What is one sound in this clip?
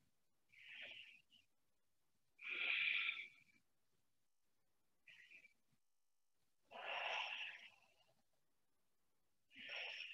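A woman breathes deeply and slowly, in long breaths.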